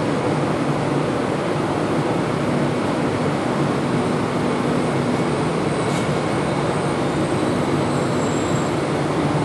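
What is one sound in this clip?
A high-speed train rolls slowly into an echoing station with a steady rumble.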